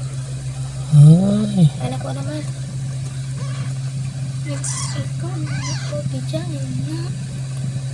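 A newborn kitten mews with thin, high cries.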